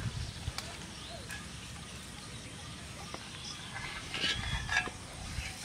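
Hands rub and swish rice against a metal sieve.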